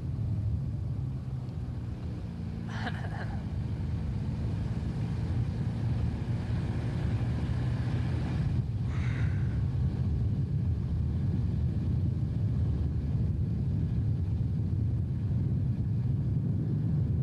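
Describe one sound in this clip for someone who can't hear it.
A car engine hums steadily while driving along a winding road.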